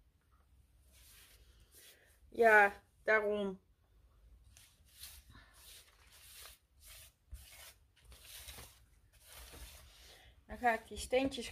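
Paper rustles and slides as hands handle it.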